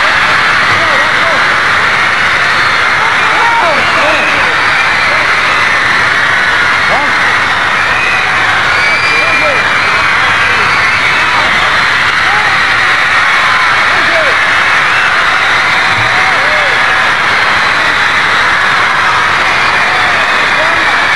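A large crowd screams and shrieks loudly without pause.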